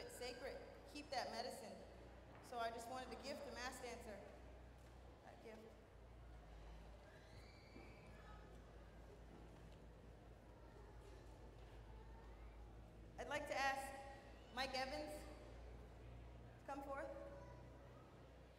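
A young woman speaks into a microphone with pauses.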